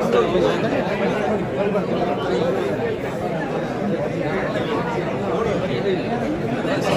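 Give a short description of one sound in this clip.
A crowd of young men chatters and shouts loudly close by, in an echoing room.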